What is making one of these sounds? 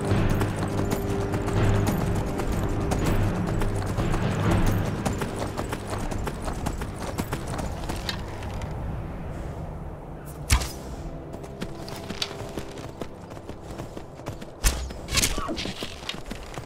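A horse's hooves thud steadily on snow.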